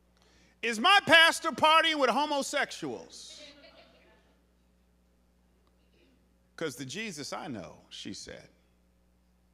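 A man speaks expressively into a microphone, heard through loudspeakers with pauses.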